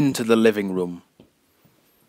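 A man speaks loudly close by, then falls silent.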